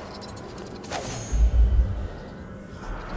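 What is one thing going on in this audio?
A magical power whooshes sharply.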